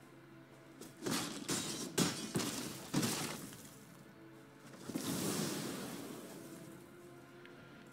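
Game sound effects whoosh and crash.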